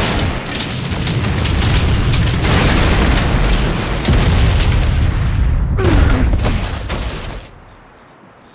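Molten lava roars and bubbles loudly.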